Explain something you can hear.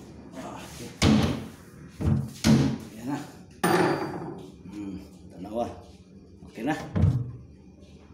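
A wooden cabinet door knocks and bangs as it is handled.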